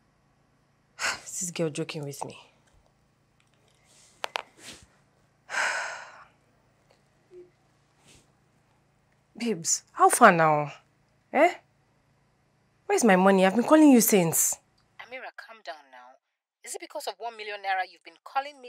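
A woman speaks with agitation into a phone, close by.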